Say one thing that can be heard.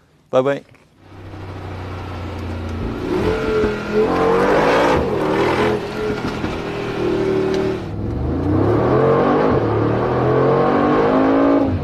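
A car engine roars and revs as the car accelerates.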